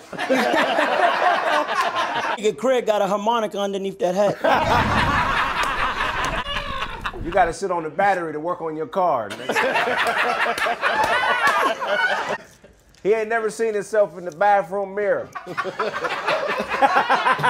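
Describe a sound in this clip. A group of men laugh loudly and cheer.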